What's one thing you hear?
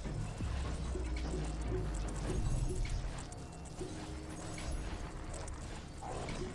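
Magic blasts and hits crackle rapidly in a busy game battle.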